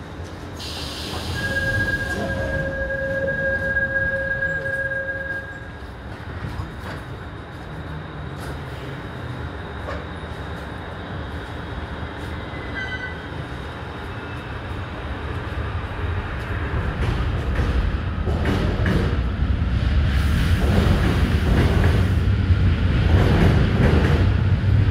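A train rumbles steadily along at speed, growing louder toward the end.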